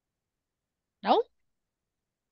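A woman makes a short rising vocal sound over an online call.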